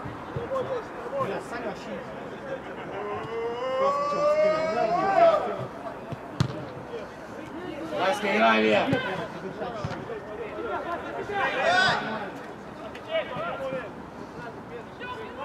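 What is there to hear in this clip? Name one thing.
Young players shout to each other across an open pitch.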